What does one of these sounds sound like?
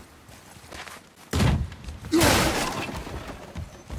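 A heavy thud sounds as a man lands from a jump.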